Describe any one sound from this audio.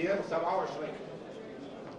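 A man speaks into a microphone in a calm, formal voice.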